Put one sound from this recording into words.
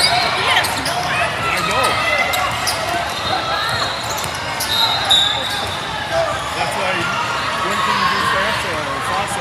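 A large crowd chatters in a big echoing hall.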